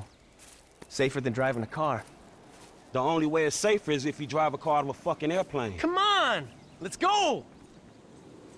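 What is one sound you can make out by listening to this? A second man answers in a firm, annoyed voice.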